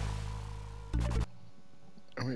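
A short electronic chime sounds as the game pauses.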